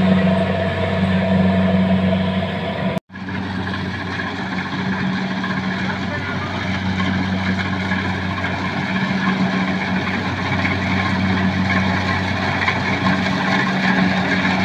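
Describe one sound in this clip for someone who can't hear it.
A harvester engine drones steadily nearby.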